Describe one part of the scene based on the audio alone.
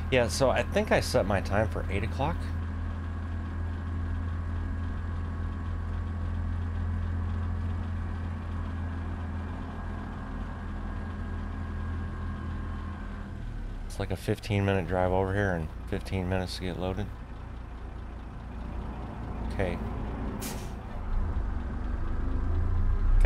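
A truck engine rumbles with a low, steady drone.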